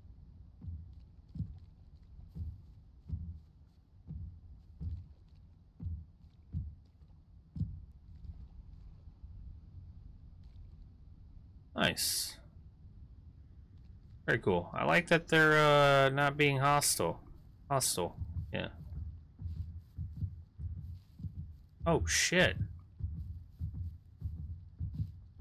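Footsteps thud softly and steadily on the ground.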